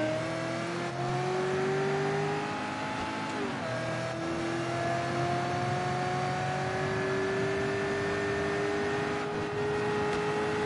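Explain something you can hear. A car engine revs steadily, rising in pitch, then drops briefly as a gear shifts.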